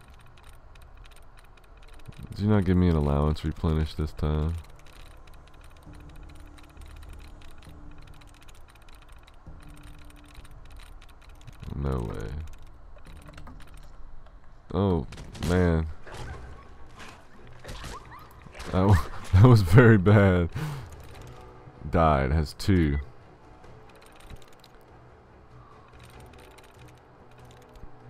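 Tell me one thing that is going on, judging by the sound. Terminal keys click and chirp softly.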